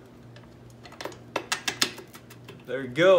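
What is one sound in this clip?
A metal axle clicks and scrapes as it slides through a frame.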